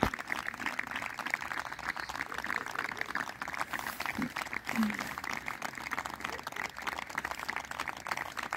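A crowd claps and applauds steadily outdoors.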